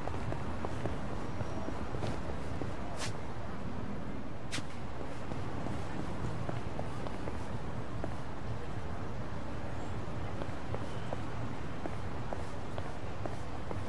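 Footsteps tap on pavement at a steady pace.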